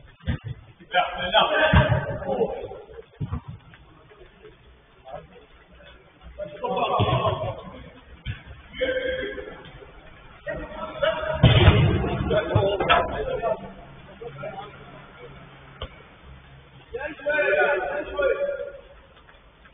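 Men shout to each other at a distance.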